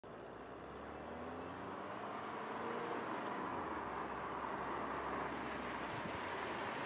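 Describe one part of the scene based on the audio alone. A car engine hums as the car drives closer.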